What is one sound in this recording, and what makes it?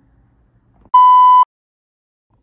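A steady, high test beep sounds briefly.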